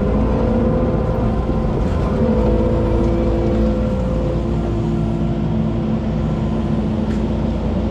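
A heavy truck rumbles slowly past.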